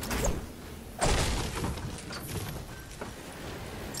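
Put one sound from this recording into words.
A pickaxe strikes a wall with sharp metallic hits.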